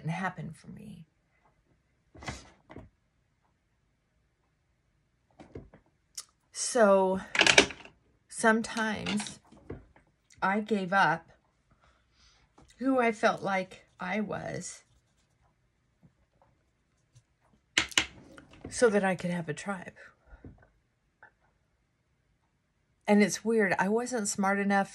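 A middle-aged woman talks calmly and close by, in short bursts with pauses.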